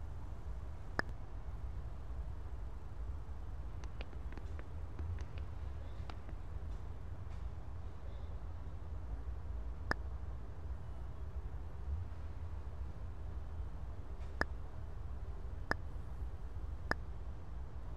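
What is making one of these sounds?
Sharp clicks sound as buttons are pressed.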